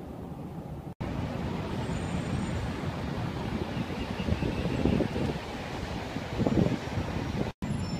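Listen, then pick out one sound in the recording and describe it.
City traffic hums far below.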